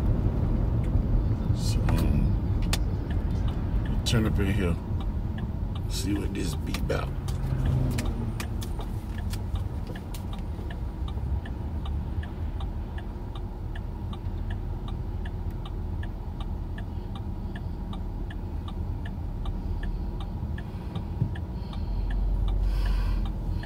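A car engine hums low and steady with road rumble.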